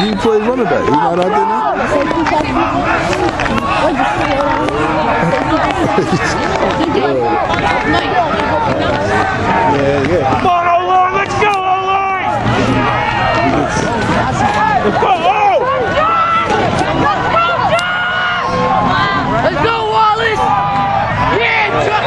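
A crowd of people talk and shout nearby, outdoors.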